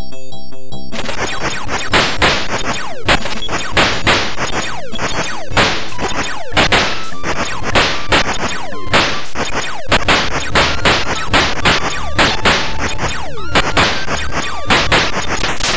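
Rapid electronic shots fire in quick bursts.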